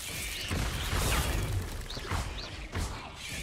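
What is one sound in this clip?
A giant spider screeches.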